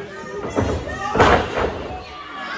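A heavy thud rings out as a body slams onto a wrestling ring mat.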